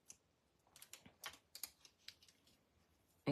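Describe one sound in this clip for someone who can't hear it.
Rubber and paper rustle and tap softly as a stamp is pressed and lifted.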